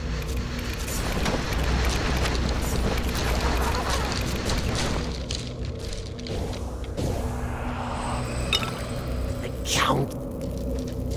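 Weapons clash and strike enemies in fast bursts.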